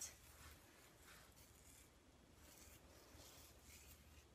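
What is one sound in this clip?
Fingers rustle through hair.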